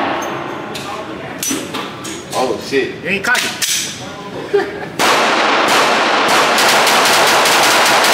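Pistol shots bang sharply in an echoing range.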